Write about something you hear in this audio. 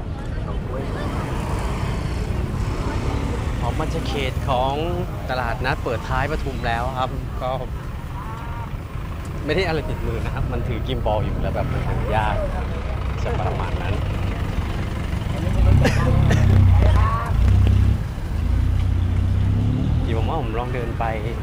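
Traffic and motorbikes rumble along a busy street.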